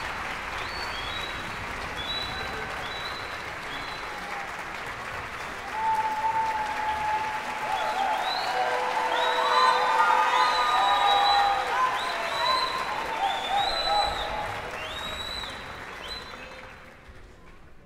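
A large wind band plays in a big echoing hall, swelling loud and then fading to an end.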